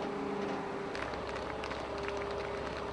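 A crowd of men claps.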